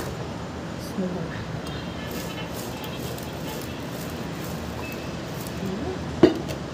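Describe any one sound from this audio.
Olives rustle and knock together as a hand tosses them in a bowl.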